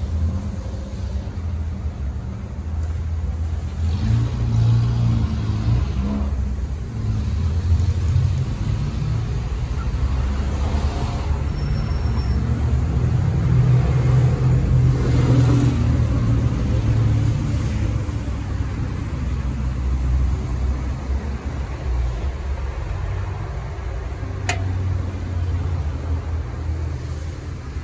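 A motorcycle engine idles nearby with a deep, throbbing rumble.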